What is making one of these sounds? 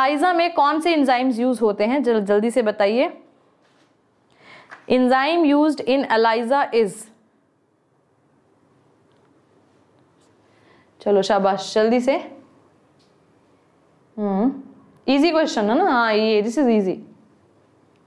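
A woman speaks clearly into a microphone, in bursts with pauses.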